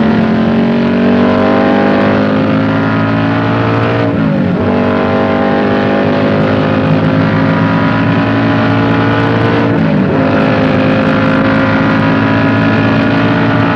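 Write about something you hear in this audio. A car engine roars loudly, rising in pitch and dropping at each gear change.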